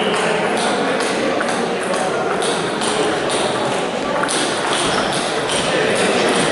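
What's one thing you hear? A table tennis ball clicks back and forth rapidly off paddles and the table.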